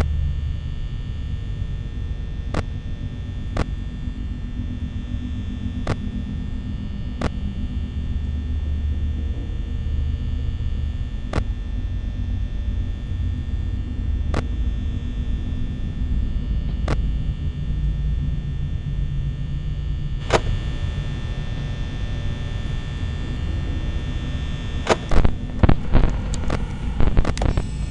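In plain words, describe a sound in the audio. A low electrical hum drones steadily throughout.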